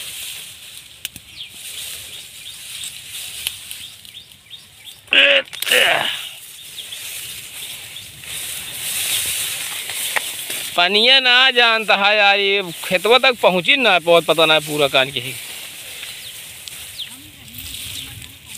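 Wind rustles through tall grass outdoors.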